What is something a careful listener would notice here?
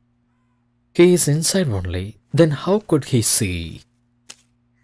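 A man speaks sharply, close by.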